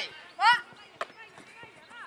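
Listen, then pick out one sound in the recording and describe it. A football thuds against a goalkeeper's gloves.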